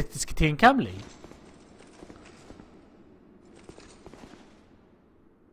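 Armoured footsteps clank across a stone floor.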